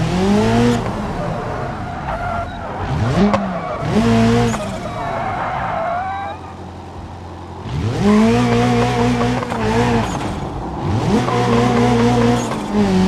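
A car engine revs hard, rising and dropping in pitch with each gear change.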